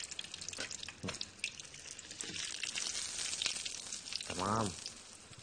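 Food sizzles and crackles in a pot.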